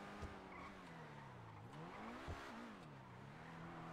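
Tyres screech on the road through sharp turns.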